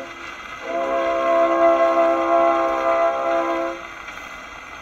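A scratchy old gramophone record plays a man singing a long, held note.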